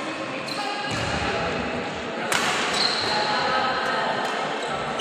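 A racket smacks a shuttlecock in a large echoing hall.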